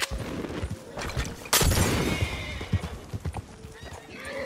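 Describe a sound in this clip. Horse hooves thud on a dirt track.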